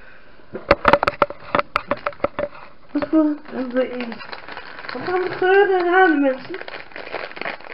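A plastic packet crinkles and rustles in someone's hands.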